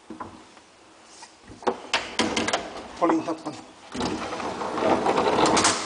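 A metal gate rattles and clanks as it slides open.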